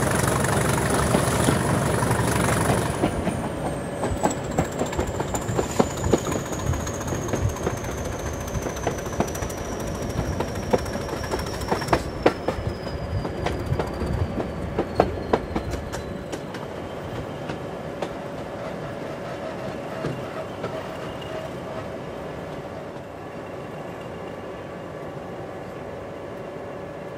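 A diesel engine hums steadily nearby.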